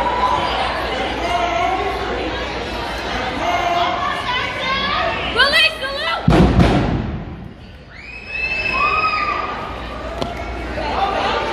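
Dancers' boots stomp on a hard floor.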